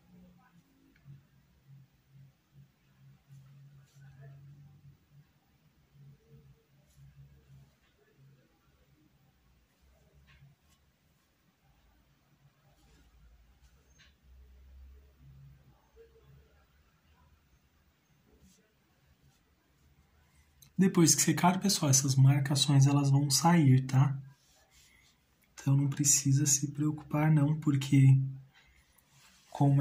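A brush strokes softly across canvas.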